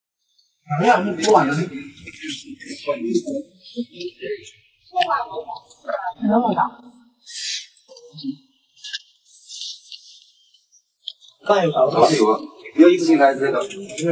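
Crunchy fried food crackles as a young woman bites and chews.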